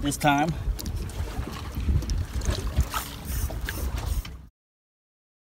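Water laps and splashes against the side of a boat.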